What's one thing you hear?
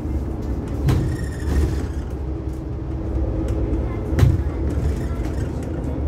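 A tram rumbles steadily along its tracks.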